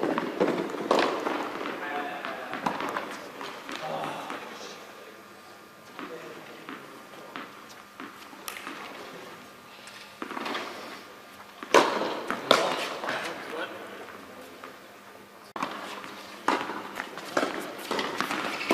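Tennis rackets strike a ball back and forth in a large echoing hall.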